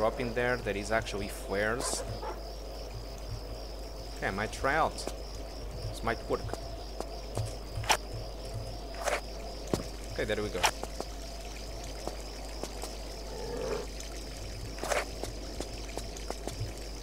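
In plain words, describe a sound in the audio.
Footsteps run across a stone rooftop.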